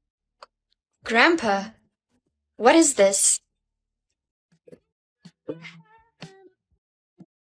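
A young woman speaks close up, with animation.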